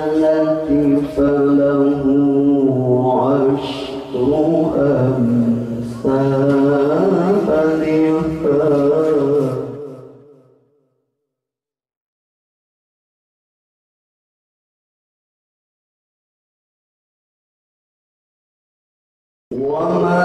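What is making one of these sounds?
A young man sings loudly through a microphone, with long held notes.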